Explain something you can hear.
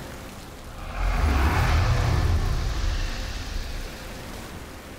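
Waves surge and crash below.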